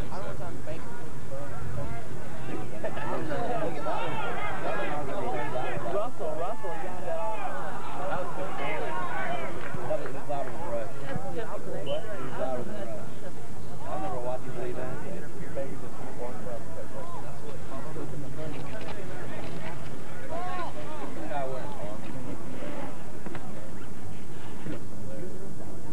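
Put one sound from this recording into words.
A crowd of spectators talks and calls out nearby outdoors.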